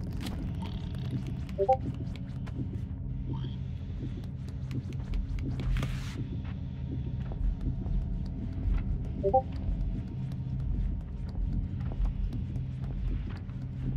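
Small footsteps patter softly across a wooden floor.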